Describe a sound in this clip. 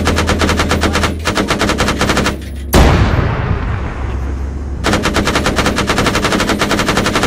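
Heavy guns fire in rapid bursts, very loud and close.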